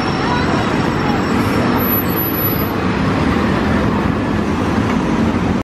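A diesel city bus idles.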